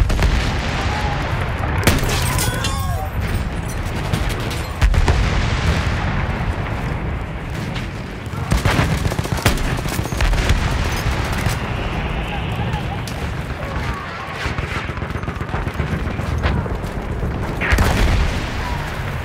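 Explosions rumble and boom in the distance.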